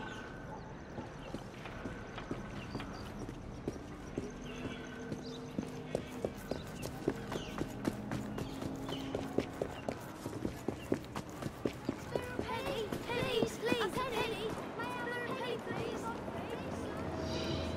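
Footsteps hurry over cobblestones.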